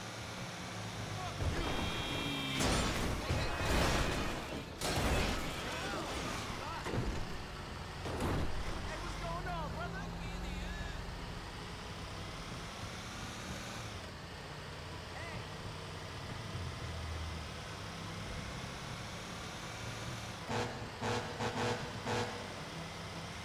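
A heavy truck engine roars steadily.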